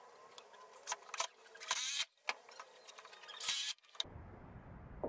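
An impact driver drives screws into wood.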